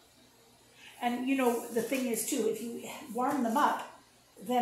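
An older woman speaks calmly close by.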